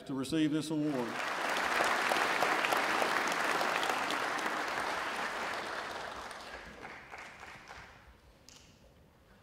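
A large audience applauds, then the clapping fades.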